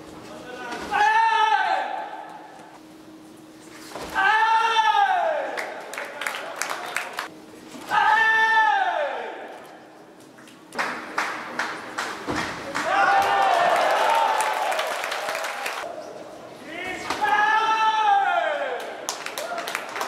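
Young men shout sharply in short bursts.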